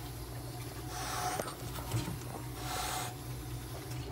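A cat hisses sharply up close.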